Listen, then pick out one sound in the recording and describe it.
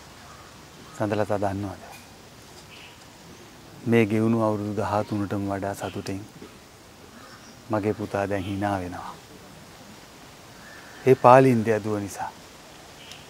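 A middle-aged man speaks calmly and close by in short phrases.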